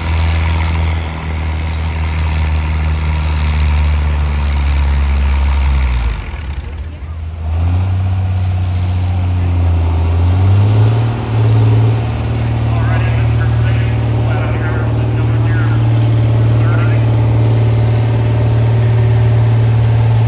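A tractor engine roars loudly and steadily close by.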